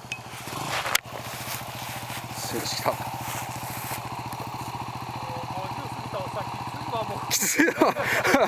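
A motorcycle engine runs and revs nearby.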